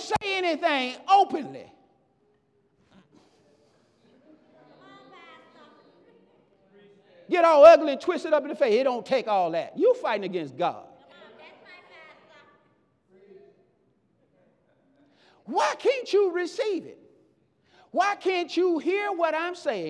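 A man preaches with animation through a microphone, pausing between phrases.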